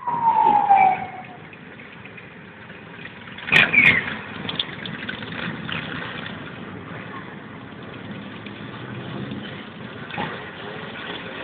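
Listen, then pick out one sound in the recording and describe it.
Motorcycle engines rumble from far below.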